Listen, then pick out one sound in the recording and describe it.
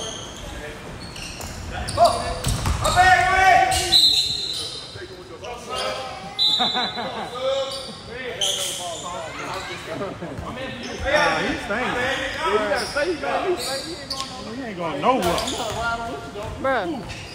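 Players shout and call out to each other in a large echoing gym.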